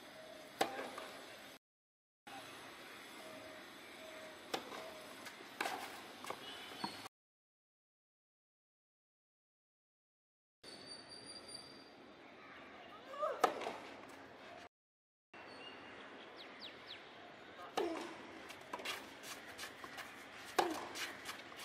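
A tennis racket strikes a ball with sharp pops outdoors.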